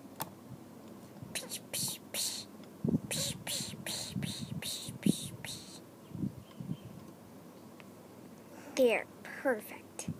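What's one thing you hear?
Small plastic toy pieces click and tap together.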